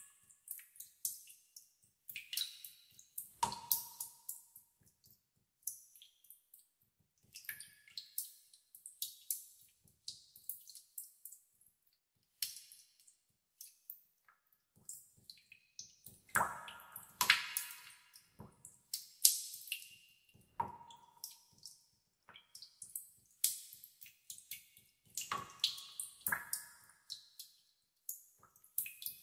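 Water drops drip and plink into still water.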